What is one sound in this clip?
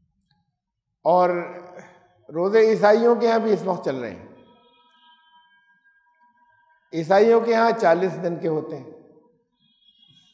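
An elderly man speaks calmly into a close headset microphone, pausing between phrases.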